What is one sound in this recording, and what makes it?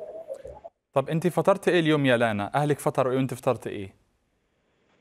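A man speaks steadily through a microphone.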